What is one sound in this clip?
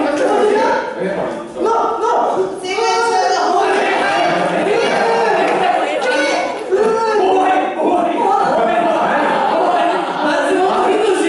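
Young actors speak and shout with animation in an echoing hall.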